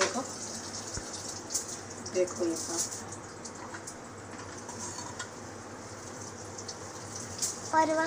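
A spatula scrapes and stirs food in a metal pan.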